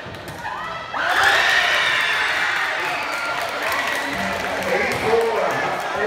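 Young people cheer and shout loudly.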